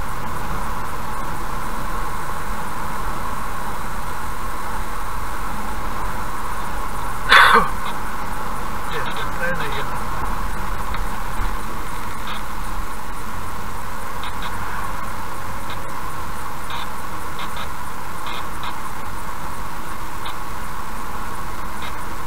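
Tyres roll steadily on an asphalt road.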